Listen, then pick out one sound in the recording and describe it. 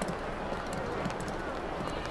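A suitcase's wheels roll over a hard floor.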